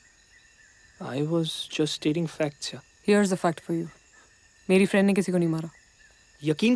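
A young man speaks softly and closely.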